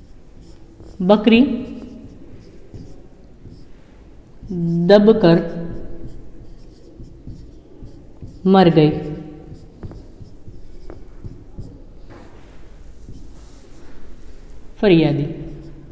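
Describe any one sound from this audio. A woman speaks in short, drawn-out phrases, as if teaching.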